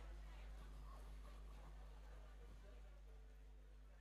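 A crowd murmurs softly nearby.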